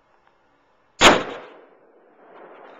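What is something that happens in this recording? A gunshot cracks loudly nearby and echoes outdoors.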